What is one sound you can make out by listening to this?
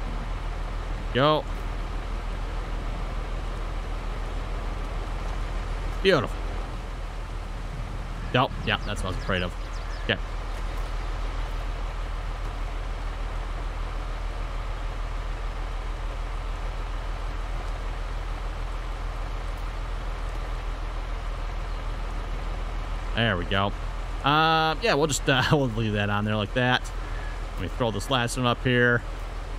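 A tractor engine idles with a low, steady hum.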